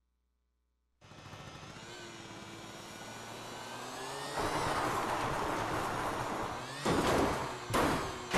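A motorbike engine hums and revs.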